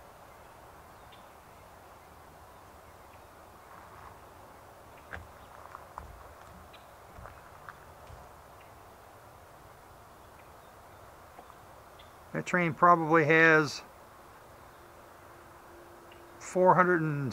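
A freight train rumbles past at a distance.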